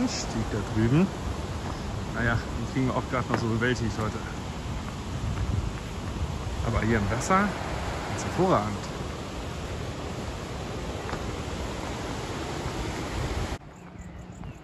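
A mountain stream rushes loudly over rocks.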